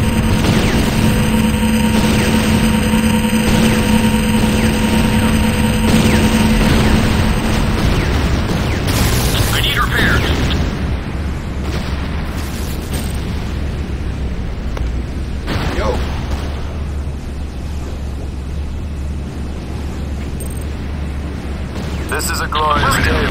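Electric energy crackles and buzzes.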